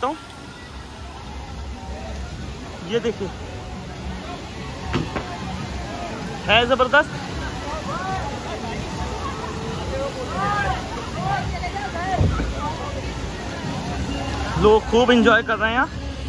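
Water splashes under children's feet.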